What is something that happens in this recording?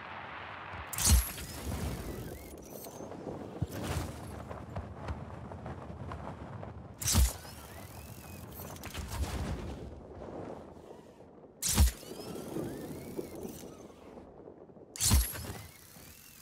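A parachute snaps open with a loud whoosh, several times.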